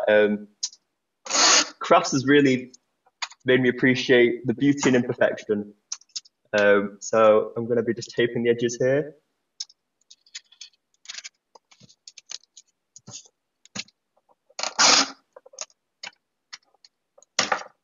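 Sticky tape is pulled and torn from a dispenser.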